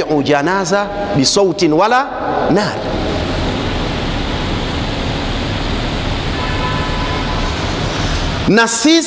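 A man preaches loudly and with animation into a microphone.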